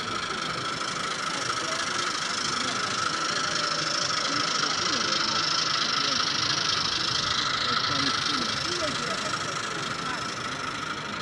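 A model train rumbles and hums along its track.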